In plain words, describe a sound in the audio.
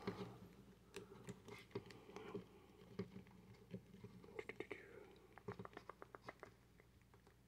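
Small plastic toy joints click and creak softly as they are twisted by hand.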